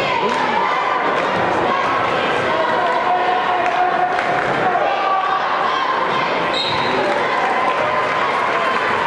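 A crowd of spectators chatters and murmurs in a large echoing hall.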